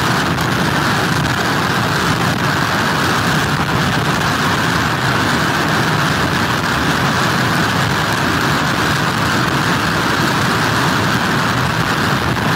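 Strong wind roars outdoors without a break.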